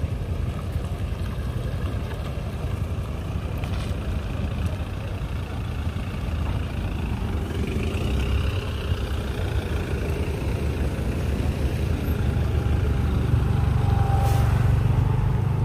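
A vehicle engine rumbles as it drives slowly past.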